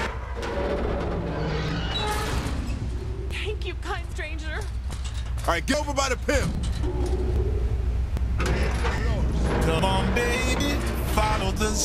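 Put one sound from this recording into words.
Heavy metal doors creak and clang open.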